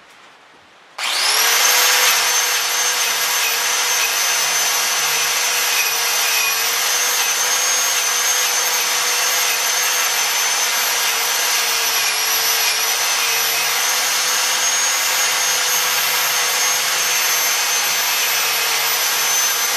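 An angle grinder starts up and whines steadily at high speed.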